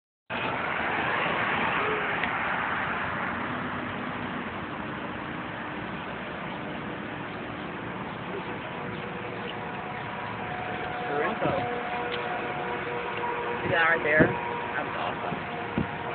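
A car engine hums steadily as the car drives along a street.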